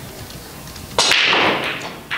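A cue ball smashes into a rack of billiard balls with a loud crack.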